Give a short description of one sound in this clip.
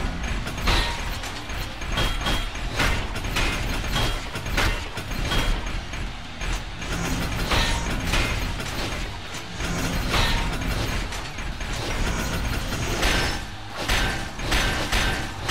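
Heavy metal punches clang and thud in quick blows.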